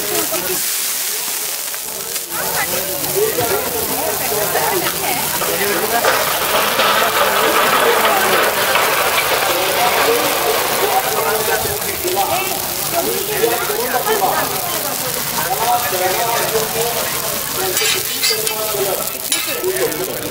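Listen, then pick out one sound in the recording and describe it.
Batter sizzles steadily on a hot griddle.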